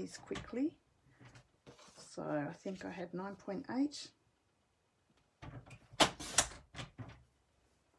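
Paper rustles and slides across a hard surface.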